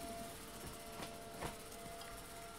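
A handheld scanner hums and clicks as it scans.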